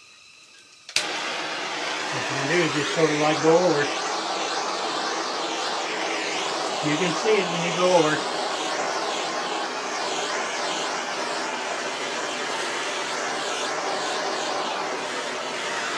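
A gas torch roars steadily close by.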